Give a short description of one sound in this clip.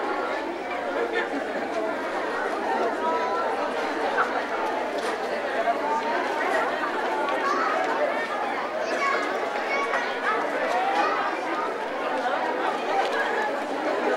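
A crowd of men, women and children chatters all around.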